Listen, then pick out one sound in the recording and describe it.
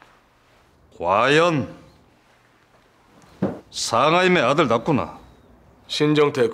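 A middle-aged man speaks slowly and calmly, close by.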